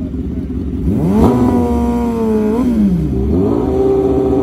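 A sport motorcycle engine revs sharply, then settles.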